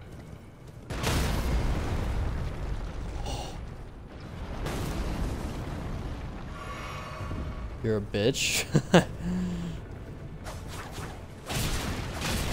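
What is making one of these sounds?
A giant's huge weapon slams into the ground with heavy crashes.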